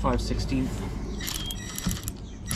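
A socket wrench ratchets briefly.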